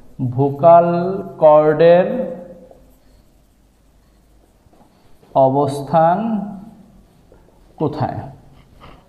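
A man speaks clearly and steadily, close by.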